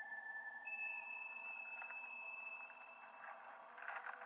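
Dry ground cracks underfoot.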